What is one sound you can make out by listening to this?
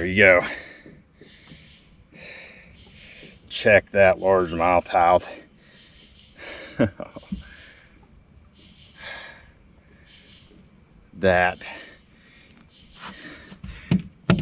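A man breathes heavily between words.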